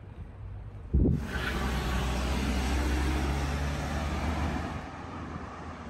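A van engine rumbles close by.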